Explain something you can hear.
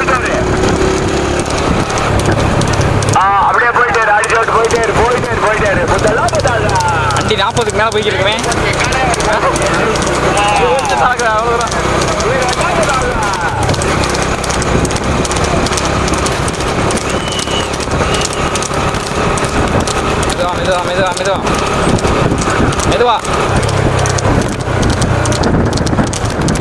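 Cart wheels rattle over the road.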